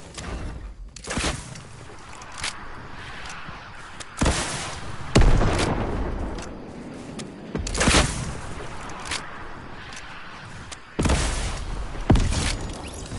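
A rocket launcher fires with a whoosh.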